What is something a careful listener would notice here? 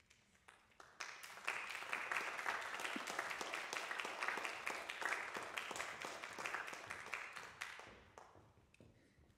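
An audience applauds loudly in a large echoing hall, then the clapping fades away.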